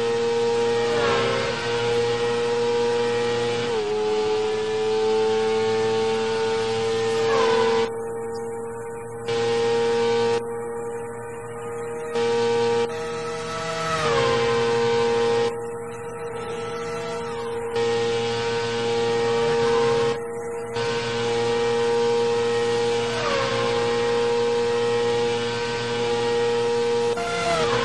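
A racing car engine whines at high revs, dropping in pitch with each gear change and climbing again.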